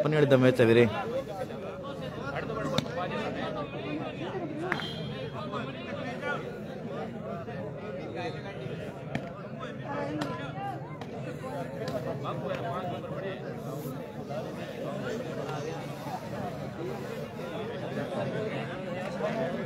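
Young people chatter and call out at a distance outdoors.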